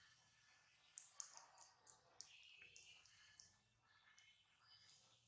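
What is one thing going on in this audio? Small nail clippers click sharply several times.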